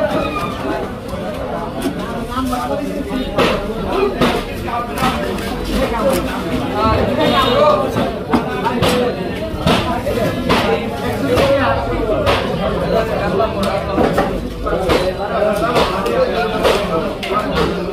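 A heavy blade chops and scrapes through wet fish flesh.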